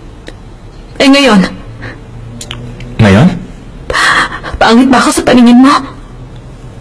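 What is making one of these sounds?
A young woman asks questions in a surprised, slightly hurt voice, close by.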